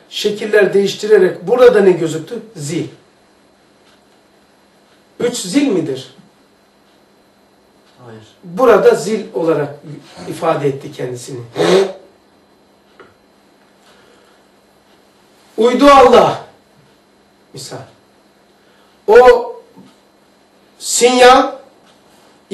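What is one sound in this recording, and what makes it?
An elderly man speaks with animation in short bursts, close by.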